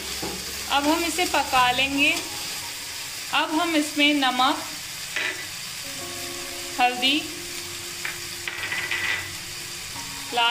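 Vegetables sizzle softly in a hot pan.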